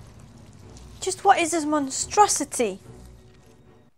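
A young woman speaks clearly and expressively into a close microphone.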